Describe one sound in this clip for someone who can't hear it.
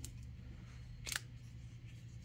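A folding knife blade snaps open with a click.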